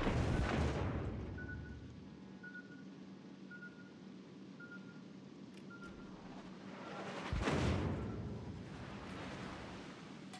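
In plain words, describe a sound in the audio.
Shells splash into the water nearby.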